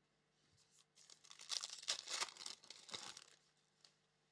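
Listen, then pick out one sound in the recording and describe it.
A foil wrapper crinkles as hands tear it open.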